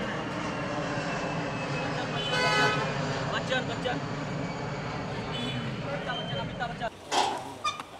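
A car engine idles close by with a low rumble.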